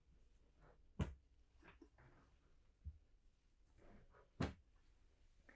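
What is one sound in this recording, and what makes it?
A cabinet door clicks open and shut.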